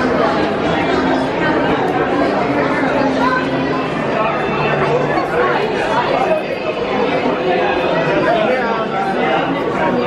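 A crowd of people chatters and murmurs nearby.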